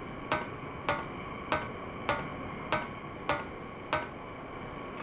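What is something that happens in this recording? Footsteps clank on the rungs of a metal ladder in a video game.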